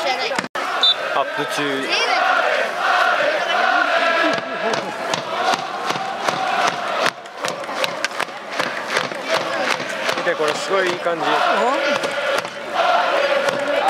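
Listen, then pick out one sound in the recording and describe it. A stadium crowd chants and sings loudly in an open-air arena.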